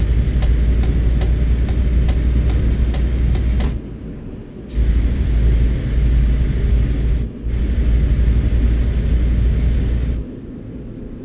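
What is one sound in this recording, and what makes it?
A truck engine drones low and steady, dropping off briefly between gear changes.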